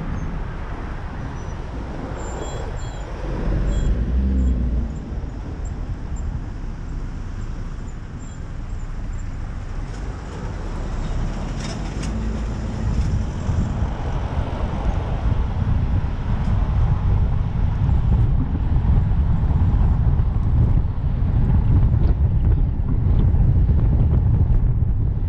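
A car's engine hums as it drives along.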